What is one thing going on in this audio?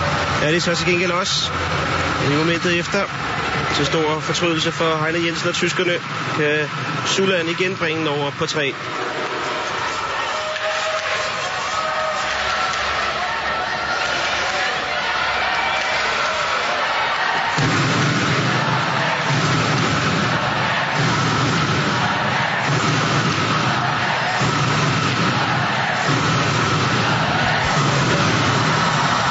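A large crowd roars and cheers in an echoing arena.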